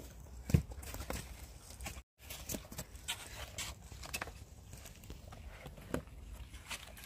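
Tomatoes thud softly into a woven basket.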